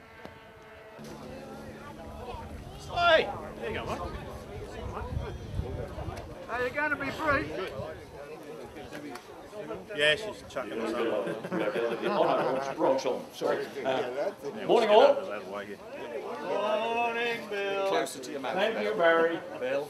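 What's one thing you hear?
A man speaks calmly into a microphone outdoors, heard through a loudspeaker.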